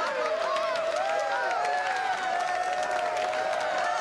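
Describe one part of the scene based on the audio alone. A few people clap their hands in rhythm.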